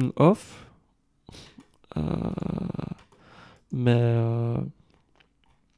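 A young man talks calmly and close into a microphone.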